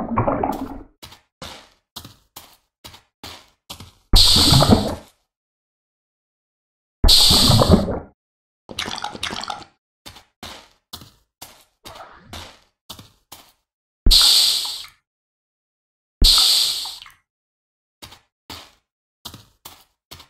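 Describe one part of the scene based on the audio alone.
Footsteps crunch on sand at a steady walking pace.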